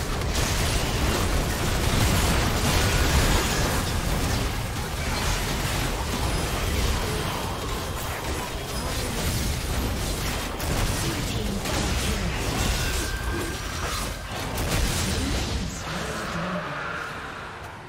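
Game spell effects whoosh, clash and explode.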